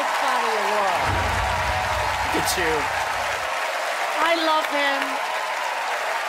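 A crowd cheers and whoops with excitement.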